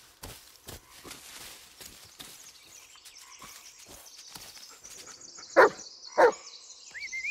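Footsteps crunch slowly over leaves and twigs on a forest path.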